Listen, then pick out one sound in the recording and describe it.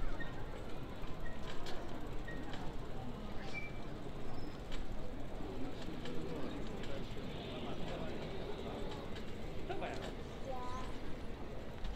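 A bicycle rolls past close by.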